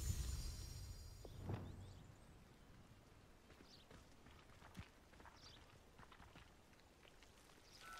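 Footsteps crunch softly on a gravel path.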